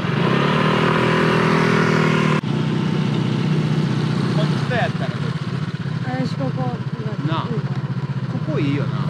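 A motor scooter engine hums steadily close by.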